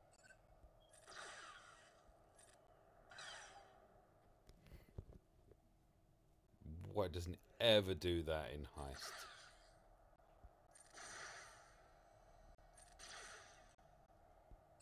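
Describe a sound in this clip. Laser blasters fire in short bursts of zapping shots.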